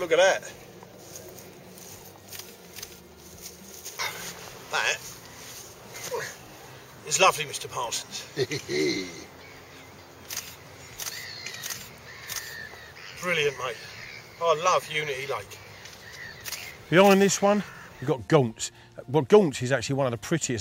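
A middle-aged man talks calmly outdoors, close by.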